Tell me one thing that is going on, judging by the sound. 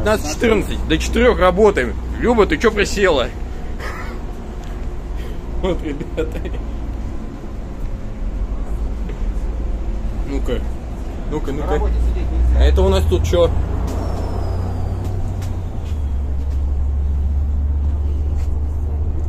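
A bus engine rumbles low and steadily.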